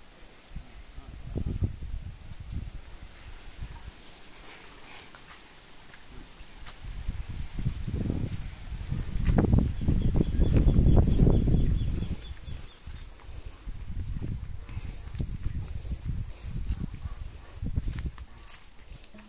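Wind rushes loudly past outdoors, in gusts.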